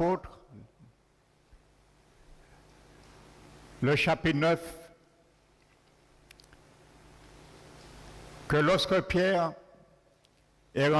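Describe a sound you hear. An older man speaks slowly through a microphone in short phrases, with long pauses.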